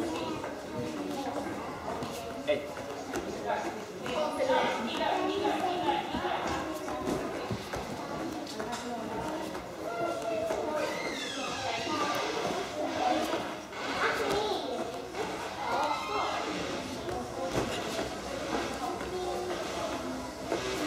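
A child's hands thump softly on a padded pommel trainer.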